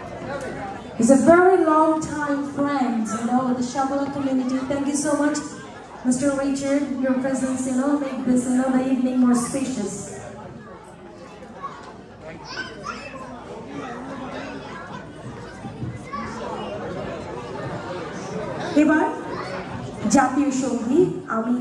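A woman speaks with drawn-out, ringing words through a microphone and loudspeakers in a large echoing hall.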